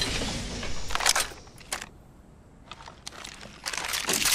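A gun clicks as it is picked up.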